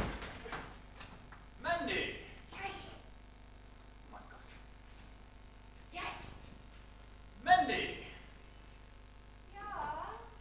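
A man speaks aloud on a stage, a little distant in a large room.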